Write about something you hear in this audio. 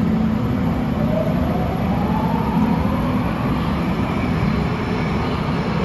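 A train's motor whines, rising in pitch as the train pulls away.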